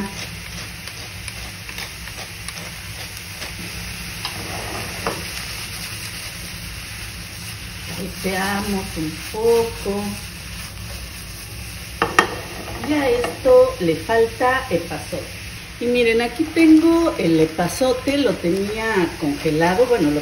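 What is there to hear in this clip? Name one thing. Mushrooms sizzle steadily in a hot pan.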